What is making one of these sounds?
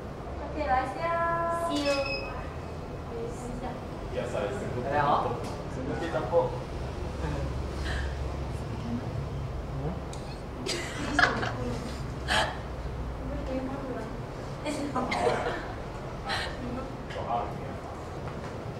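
A young woman talks cheerfully nearby.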